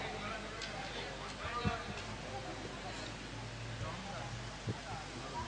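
A crowd of men murmurs and chatters nearby.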